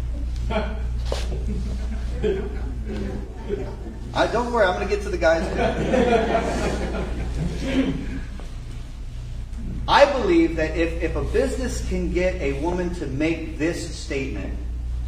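A middle-aged man speaks with animation in a large echoing hall.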